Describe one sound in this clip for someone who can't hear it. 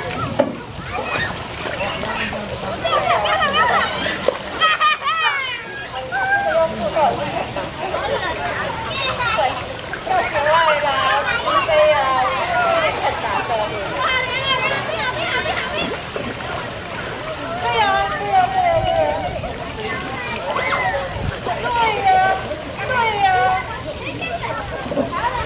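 Children shout and squeal excitedly nearby, outdoors.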